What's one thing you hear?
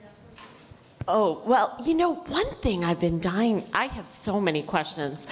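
A woman speaks into a microphone with animation, heard over a loudspeaker in a large room.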